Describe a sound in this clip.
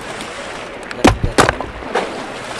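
An axe chops into a wooden log with sharp thuds.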